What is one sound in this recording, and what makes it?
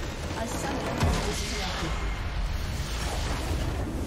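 A large crystal structure explodes with a deep boom.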